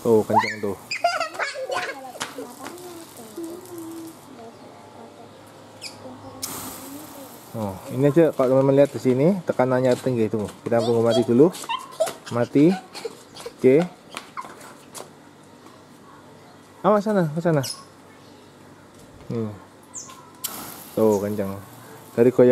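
Water sprays and hisses from a garden hose nozzle.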